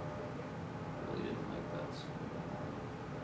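A man speaks quietly at a distance in a room.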